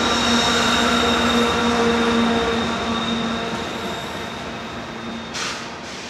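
A diesel locomotive engine rumbles loudly close by, then fades.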